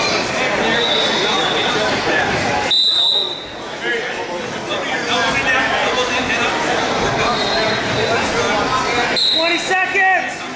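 A crowd of spectators chatters and shouts in a large echoing gym.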